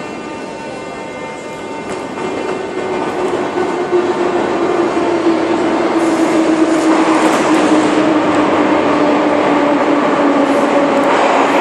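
Footsteps echo through a large hall.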